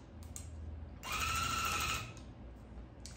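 A tufting gun buzzes steadily.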